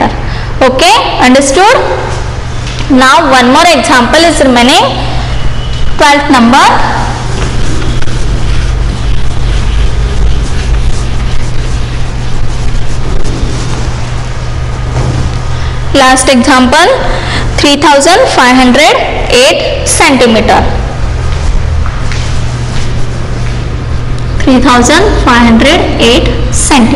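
A woman speaks clearly and steadily in short bursts with pauses.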